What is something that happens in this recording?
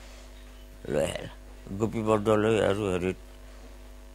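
An elderly man speaks with animation, close by.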